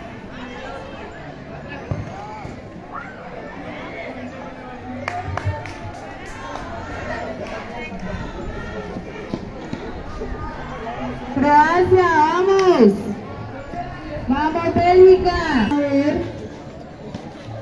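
A crowd of young people chatter and shout outdoors.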